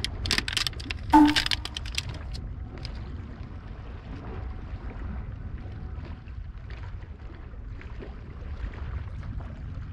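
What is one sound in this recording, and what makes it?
Waves lap softly against rocks.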